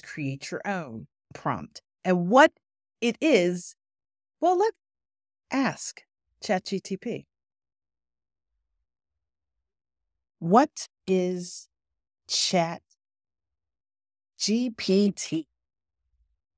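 A woman speaks calmly and clearly into a close microphone, with pauses.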